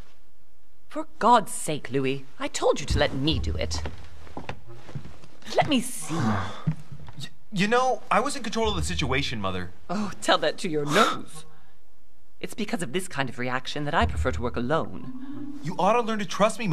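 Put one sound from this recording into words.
A man speaks angrily.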